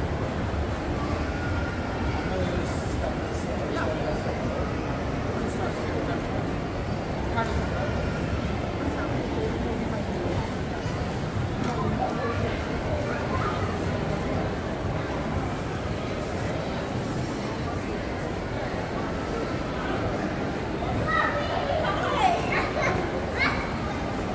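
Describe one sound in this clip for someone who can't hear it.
Crowd chatter murmurs throughout a large echoing hall.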